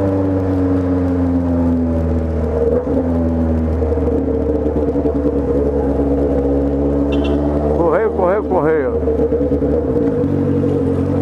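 A motorcycle engine hums close by as it rides through traffic.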